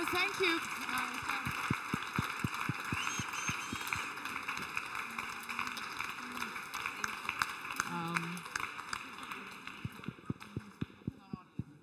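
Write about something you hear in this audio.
A woman nearby claps her hands.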